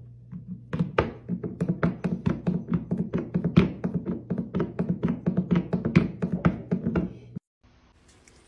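A cat taps a plastic bowl on a wooden floor in a quick beat.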